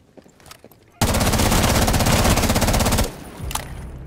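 A rifle fires a rapid, loud burst.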